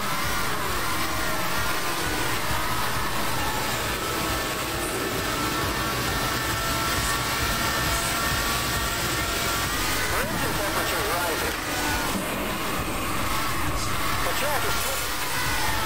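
Tyres screech as a car drifts through a corner.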